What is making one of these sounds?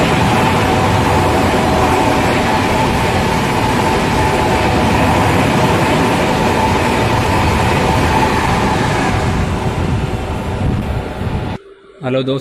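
A passenger train rushes past close by with a loud rumbling roar and clattering wheels.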